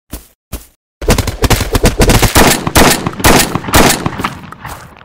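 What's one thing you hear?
A rifle fires in rapid loud bursts.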